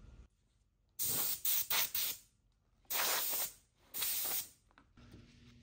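Compressed air hisses in short, loud bursts.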